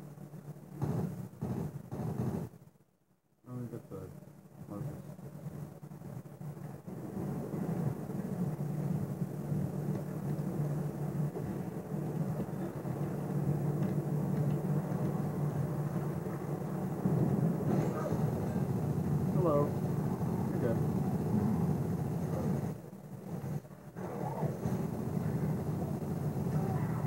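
Rapid gunfire rattles through a television speaker.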